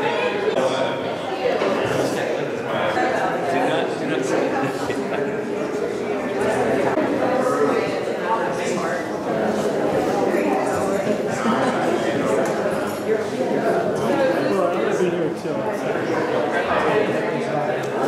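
A crowd of men and women chatter in an echoing room.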